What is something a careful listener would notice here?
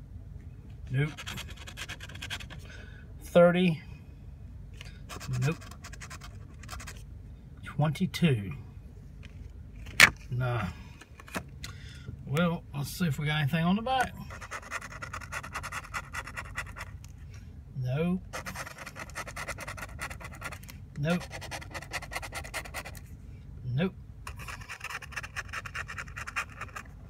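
A hard edge scratches rapidly across a card.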